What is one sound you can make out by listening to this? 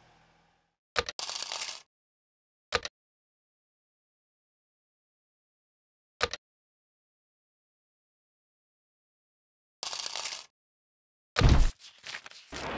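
Short electronic chimes and clicks sound as game menus open and close.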